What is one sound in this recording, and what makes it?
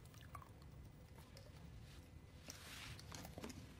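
A young woman chews softly.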